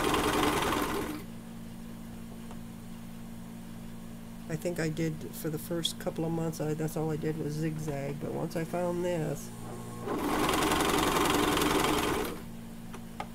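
A sewing machine runs fast, whirring and stitching in short bursts.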